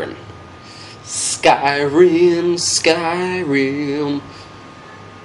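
A young man speaks with animation into a close microphone, drawing out his words.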